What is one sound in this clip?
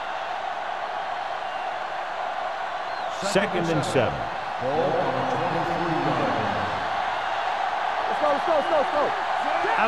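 A large crowd cheers and murmurs steadily in a big open stadium.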